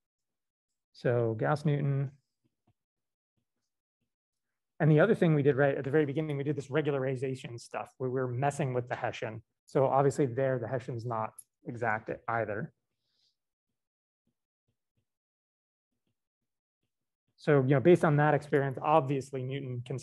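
A man speaks calmly through a microphone on an online call, in short bursts with pauses.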